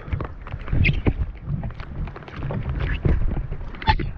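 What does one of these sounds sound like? Bare feet slap on a wet dock.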